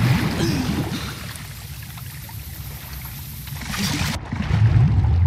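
Water splashes as a person swims.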